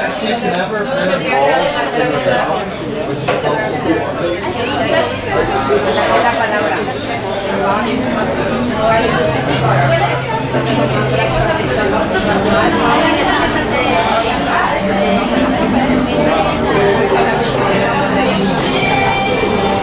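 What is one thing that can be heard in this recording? Men and women chat and talk over one another nearby, outdoors.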